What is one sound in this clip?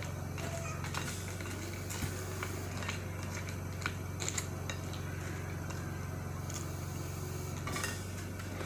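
A spoon clinks and scrapes against a bowl.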